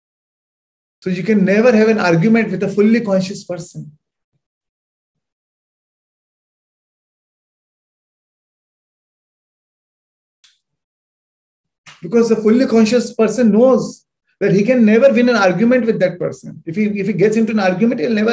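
A man speaks with animation through a microphone over an online call.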